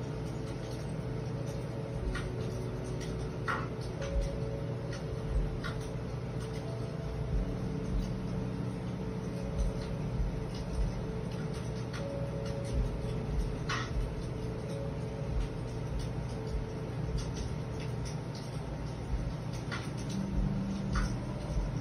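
Hands rub and knead bare skin softly.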